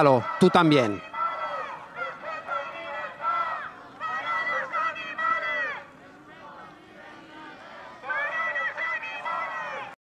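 A crowd of protesters chants outdoors in unison.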